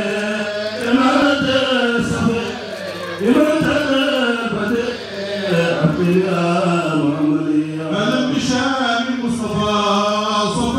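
A group of men chant together in unison in a large, echoing hall.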